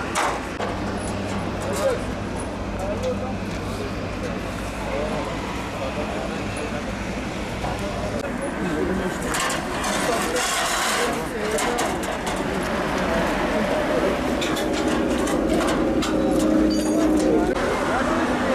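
Metal clanks as a man works on a steel guardrail.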